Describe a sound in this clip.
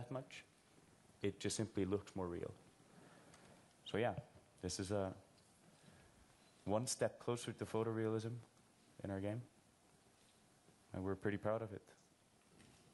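A man speaks calmly through a microphone in a large hall, with pauses.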